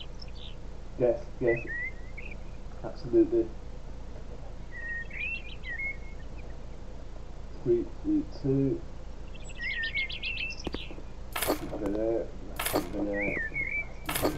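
A young man talks in short bursts into a close microphone.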